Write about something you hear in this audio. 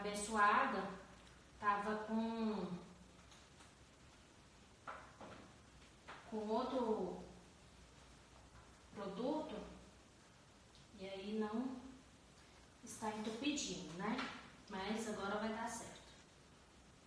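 A woman talks calmly and close by, with pauses.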